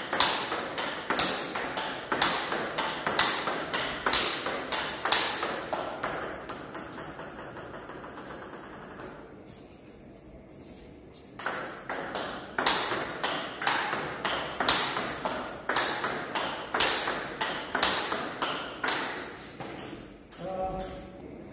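A ping-pong ball clicks rapidly back and forth off paddles and a table.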